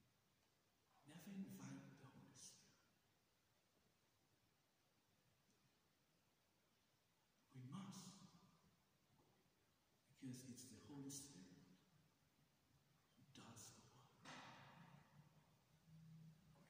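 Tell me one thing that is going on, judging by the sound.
A man speaks slowly and solemnly into a microphone in a large echoing hall.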